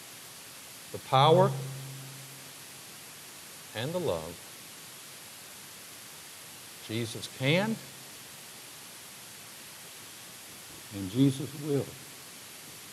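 A middle-aged man preaches through a microphone with dramatic pauses, his voice carrying in a large echoing hall.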